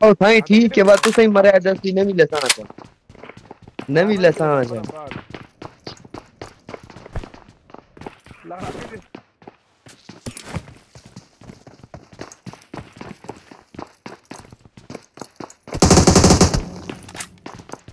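Footsteps patter quickly on a hard floor.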